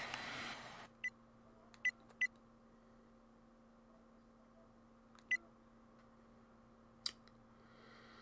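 Short electronic menu beeps sound now and then.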